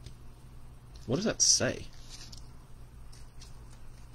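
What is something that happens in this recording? A card is set down on a table with a light tap.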